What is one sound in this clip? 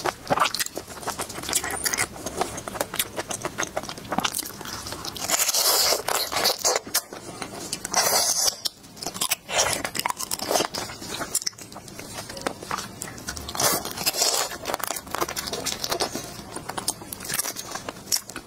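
Shellfish shells crack and crunch close to a microphone.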